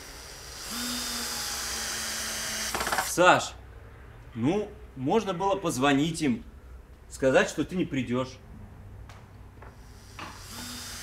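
A cordless drill whirs as it drives a screw into wood.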